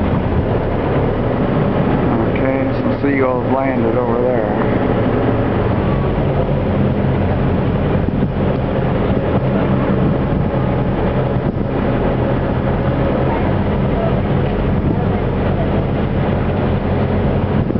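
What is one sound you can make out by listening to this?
Wind buffets steadily over open water.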